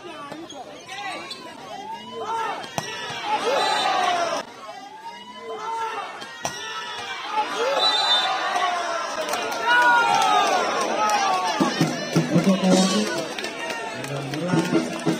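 A crowd outdoors cheers and shouts.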